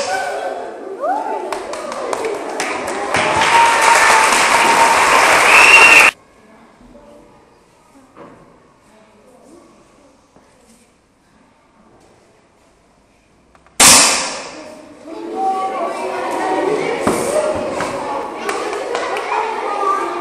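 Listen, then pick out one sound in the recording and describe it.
Many children chatter and shout loudly around the room.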